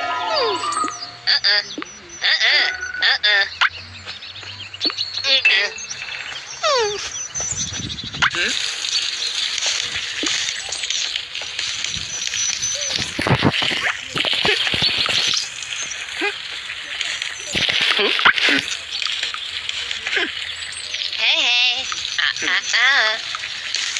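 Cartoonish chirps and twinkling game sounds play.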